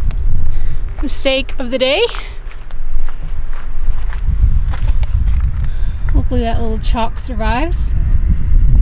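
A young woman talks calmly close to the microphone.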